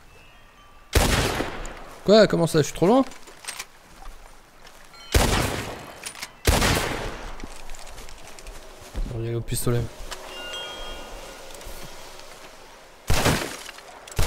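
Gunshots crack loudly and ring out.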